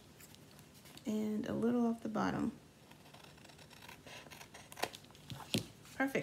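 Scissors snip through card stock.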